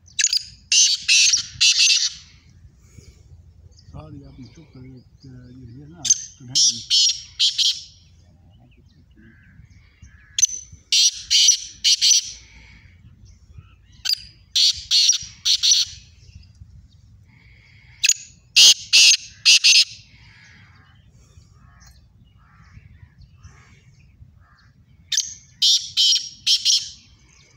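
Caged birds call in loud, repeated bursts of sharp, high chirps.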